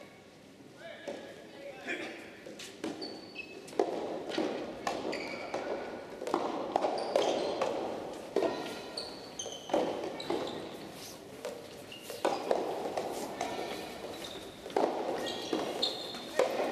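Rackets hit a ball back and forth in a large echoing hall.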